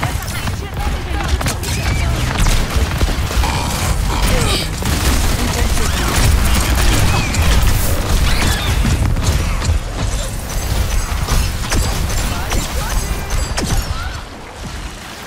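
Game gunfire rattles and booms in quick bursts.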